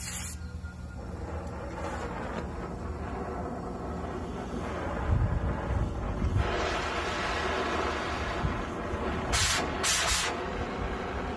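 A gas torch ignites and roars steadily.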